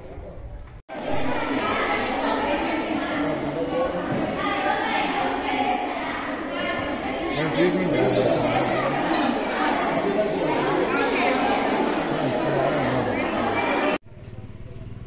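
Many young girls chatter and call out together all around.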